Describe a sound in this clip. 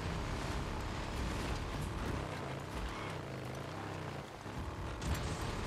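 Tyres crunch over gravel and dirt.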